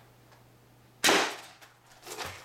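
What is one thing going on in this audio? A foam dart blaster fires with a sudden puff of air.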